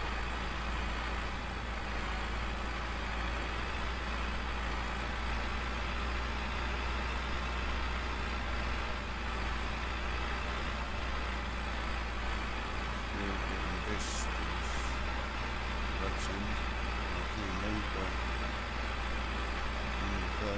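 A harrow rattles over the dirt.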